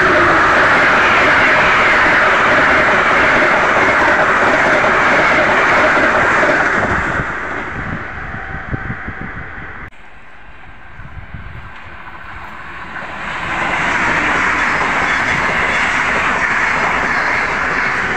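A high-speed train rushes past close by with a loud, steady roar that fades away.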